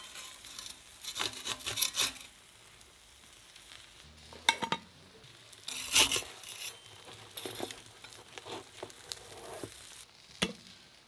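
A metal spatula scrapes and clinks against pastries in a clay oven.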